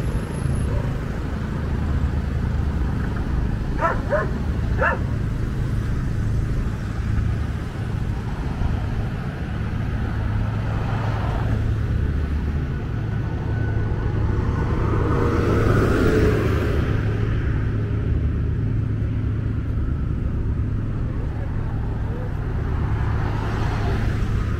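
Cars and vans pass by on a nearby road.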